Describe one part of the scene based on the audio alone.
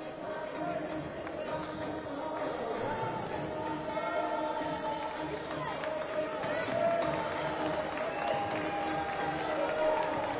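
Players' shoes squeak on a wooden court in a large echoing hall.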